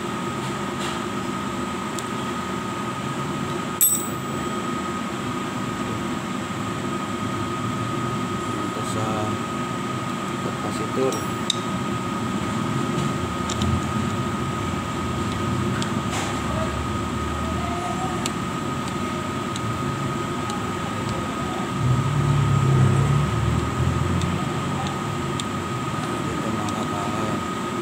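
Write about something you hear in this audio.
A screwdriver tip clicks against metal terminals.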